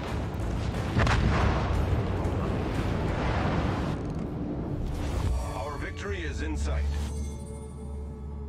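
Shells explode with deep rumbling blasts.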